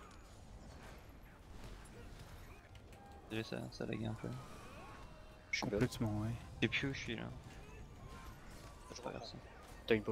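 Fiery magic blasts whoosh and crackle in bursts.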